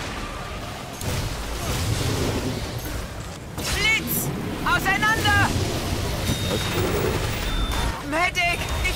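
A flamethrower roars in long bursts.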